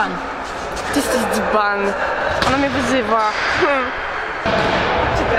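A young woman talks cheerfully close by.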